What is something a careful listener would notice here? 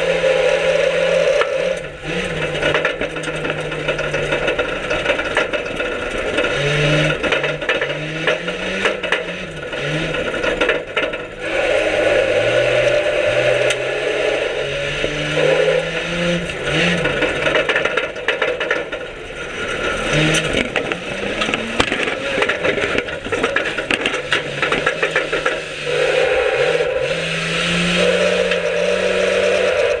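Dirt and stones rattle against a car body.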